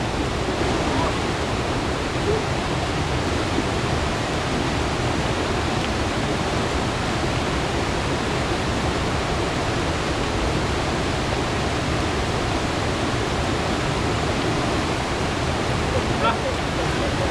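A rushing stream roars steadily over rocks.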